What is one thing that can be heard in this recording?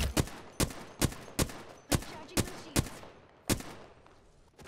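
A gun fires sharp single shots in quick succession.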